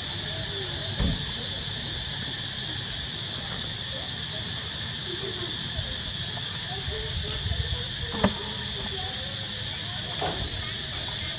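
Monkeys thump and scramble on wooden beams.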